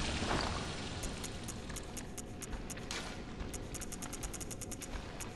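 Soft menu clicks tick repeatedly as a selection moves.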